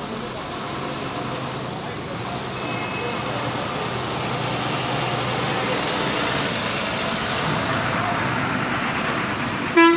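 A bus engine rumbles close by as a bus drives past.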